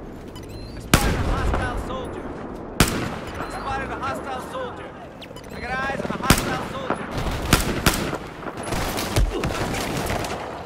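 A rifle fires sharp shots.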